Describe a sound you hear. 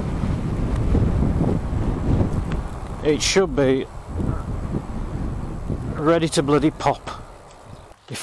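Wind buffets and rumbles past a moving bicycle.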